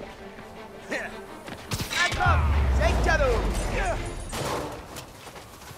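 Heavy punches and crashes thud during a fight.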